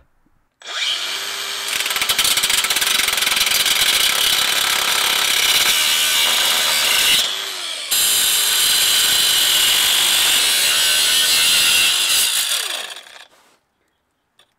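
A power grinder whines loudly as it cuts into metal, then winds down.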